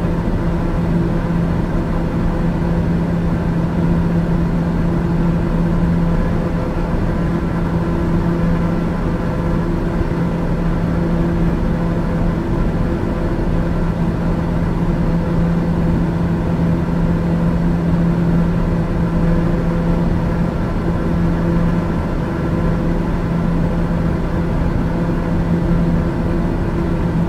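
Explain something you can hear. An aircraft engine drones steadily in flight.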